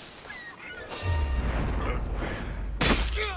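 A game character lands on the ground with a thud.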